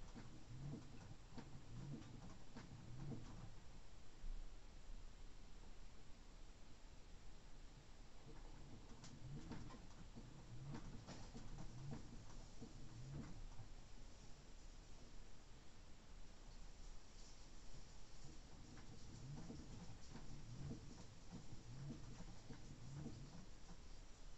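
Wet laundry thumps and sloshes rhythmically inside a washing machine drum.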